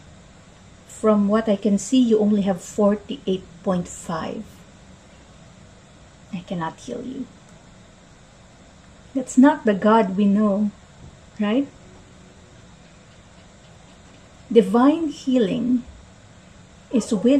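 A young woman speaks calmly and closely into a microphone, with pauses.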